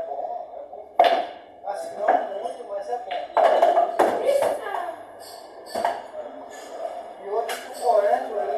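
Pool balls clack sharply together on a table.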